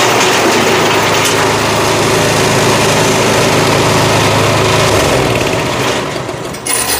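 A small petrol engine drones steadily.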